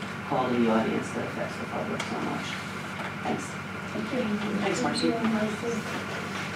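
A woman speaks out to a room, heard from a distance in a room with some echo.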